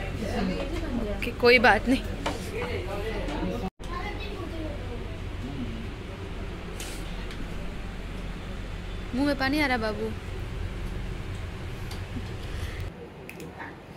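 Background chatter and a low hum fill the room.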